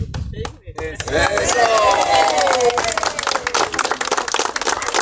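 A crowd of men and women cheers and shouts.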